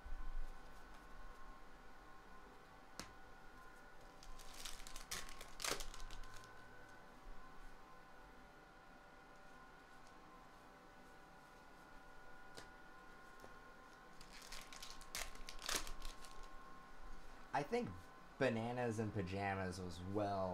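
Cardboard trading cards rustle and slide as hands shuffle through them.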